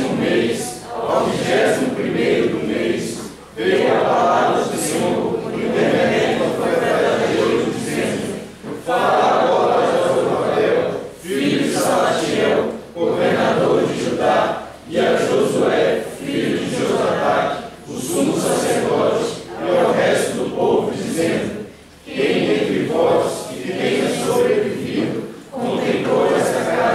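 A young woman reads aloud calmly through a microphone and loudspeaker.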